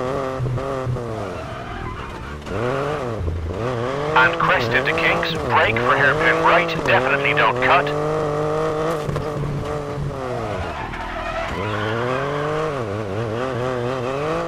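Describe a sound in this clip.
A rally car engine revs hard, rising and falling in pitch as gears change.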